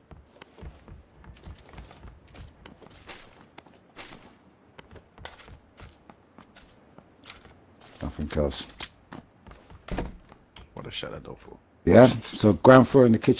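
Footsteps thud and creak on a wooden floor.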